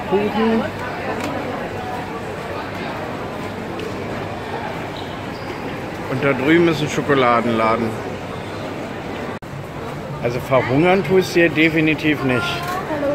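A crowd murmurs indoors in the background.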